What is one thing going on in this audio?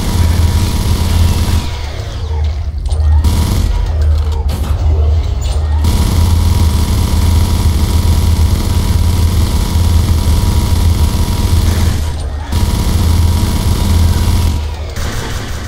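A rapid-fire gun rattles in long, loud bursts.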